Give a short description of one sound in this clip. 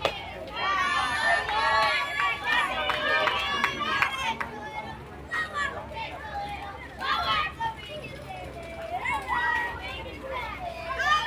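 Young girls chant and cheer loudly outdoors.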